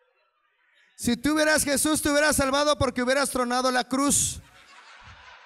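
A young man speaks loudly through a microphone.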